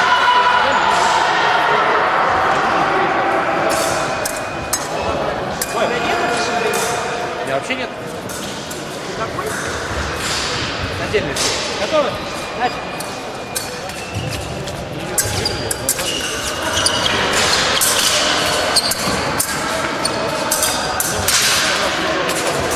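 Voices murmur in a large echoing hall.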